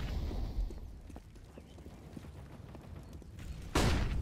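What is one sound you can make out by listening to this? Footsteps tap on a stone path.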